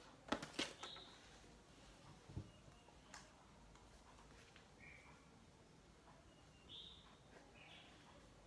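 A plastic bottle crinkles and clicks as it is handled.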